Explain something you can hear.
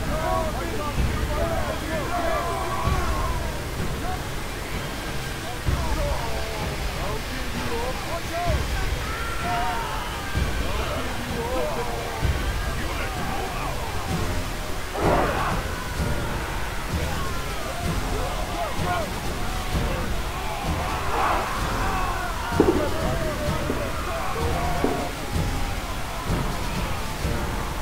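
A large army marches with a steady rumble of many feet.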